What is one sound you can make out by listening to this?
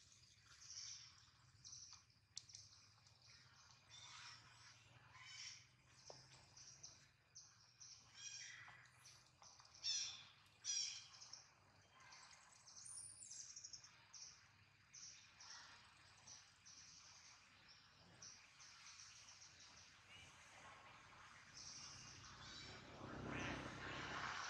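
A baby long-tailed macaque squeals and whimpers.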